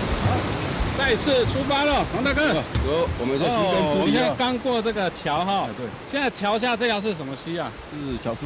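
A middle-aged man talks with animation outdoors, close by.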